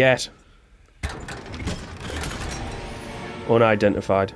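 A magical shimmer swells as a chest unlocks.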